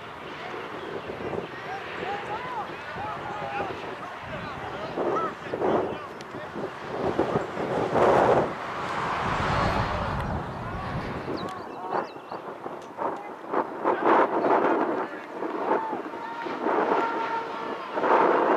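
Men and women spectators chat and cheer at a distance outdoors.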